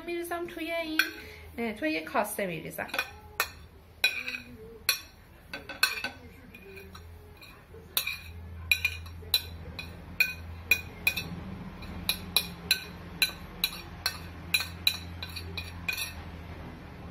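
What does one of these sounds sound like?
A metal spoon scrapes and taps against a ceramic plate.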